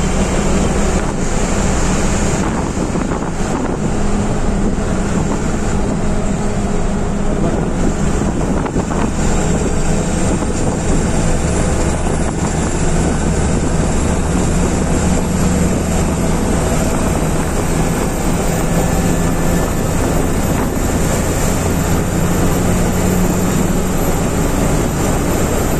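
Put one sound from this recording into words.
A bus engine drones steadily while driving.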